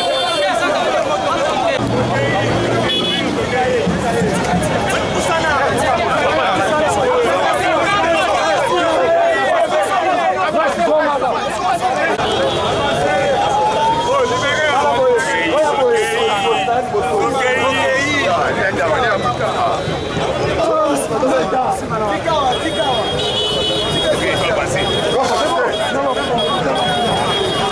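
A large crowd of men and women sings and chants loudly close by, outdoors.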